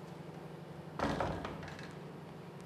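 A wooden door thumps shut.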